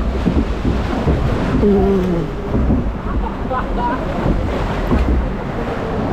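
Water splashes against a raft's sides.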